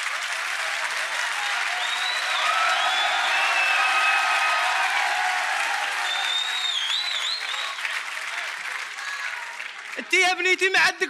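A large crowd cheers and claps in a big hall.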